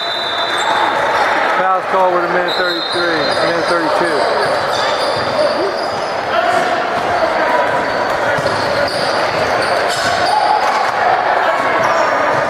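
Young players call out and chatter across the court.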